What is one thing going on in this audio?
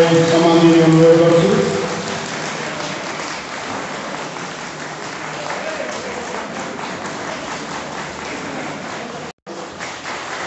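Men beat hand drums.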